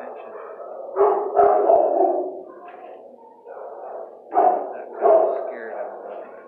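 A dog yelps loudly a few times.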